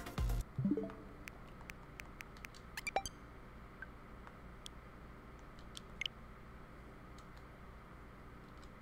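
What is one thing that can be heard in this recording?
Short electronic menu clicks and chimes sound.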